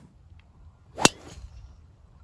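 A golf driver strikes a ball off a tee with a sharp crack.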